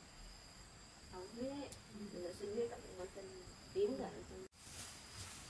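A woman talks quietly close by.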